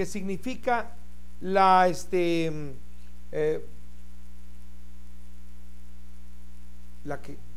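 An elderly man speaks with animation into a close microphone, in short bursts with long pauses.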